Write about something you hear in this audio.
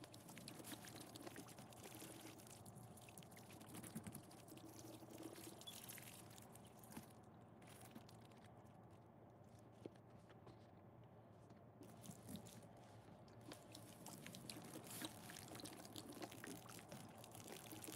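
A thin stream of water trickles and splashes onto soaked sponges close up.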